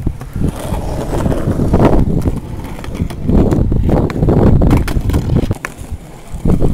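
Skateboard wheels roll and rumble over rough concrete.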